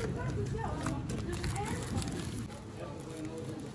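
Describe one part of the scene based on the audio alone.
A paper bag rustles as it is pulled open.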